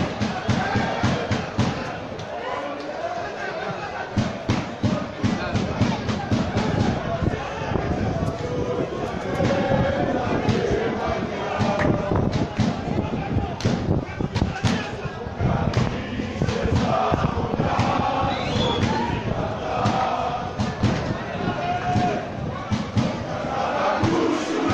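A crowd of fans sings and chants loudly nearby, outdoors.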